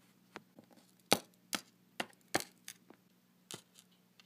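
Small plastic toys tap and knock lightly on a hard surface.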